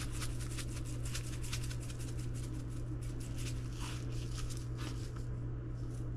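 A spice shaker rattles as seasoning is shaken out.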